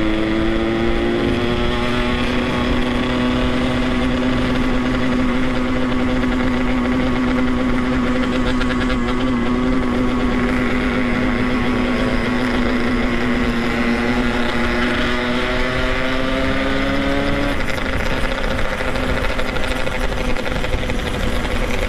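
Wind rushes and buffets loudly past the rider.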